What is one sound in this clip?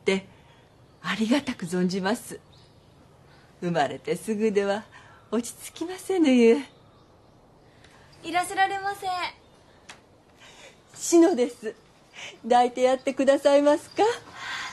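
An elderly woman speaks warmly and with a smile.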